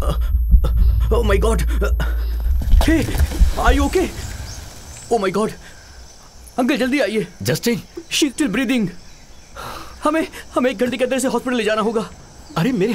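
A middle-aged man speaks tensely nearby.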